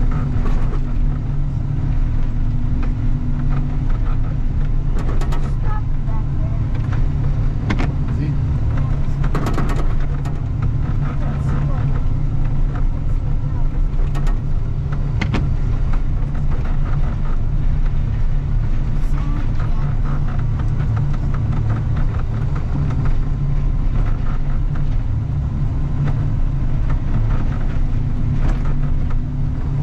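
A heavy diesel engine rumbles steadily up close.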